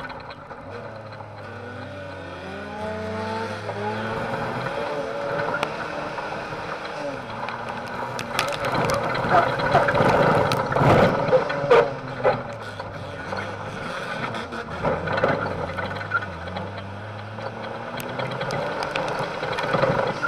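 A car engine roars and revs up and down, heard from inside the car.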